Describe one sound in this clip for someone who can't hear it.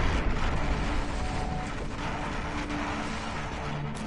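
Electric lightning crackles and buzzes.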